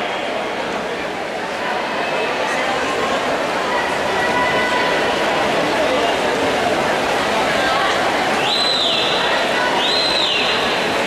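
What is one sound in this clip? Swimmers splash and churn the water.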